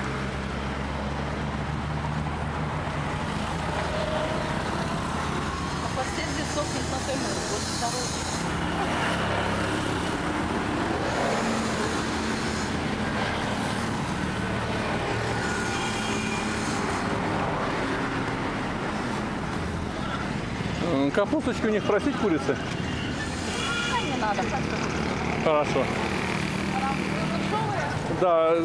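Traffic rumbles past steadily on a road outdoors.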